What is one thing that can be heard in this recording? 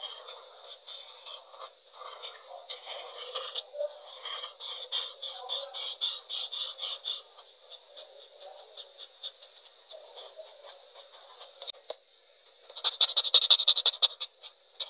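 A felt-tip marker scratches and squeaks in quick strokes on paper.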